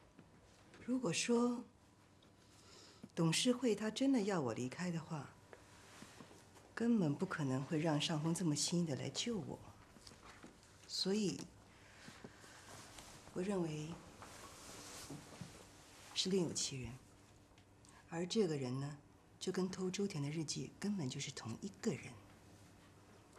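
A woman speaks calmly and seriously, close by.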